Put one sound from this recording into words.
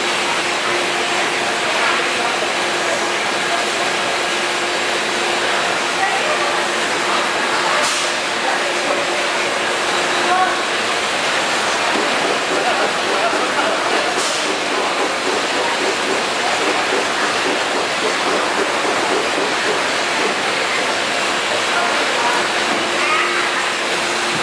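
Plastic bottles clatter against each other on a moving conveyor.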